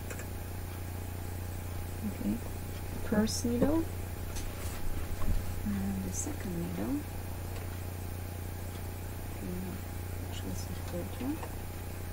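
Plastic parts of a sewing machine click softly as hands handle them.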